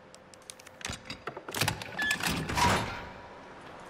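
A heavy metal lock clanks.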